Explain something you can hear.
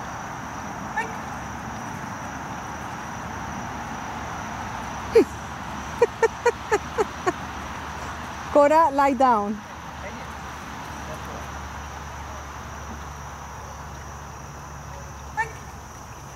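A woman calls out short, brisk commands to a dog.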